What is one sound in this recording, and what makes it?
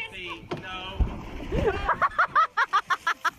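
A body splashes heavily into water.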